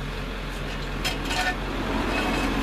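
Metal clanks sharply against concrete.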